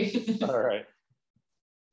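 An elderly man speaks cheerfully over an online call.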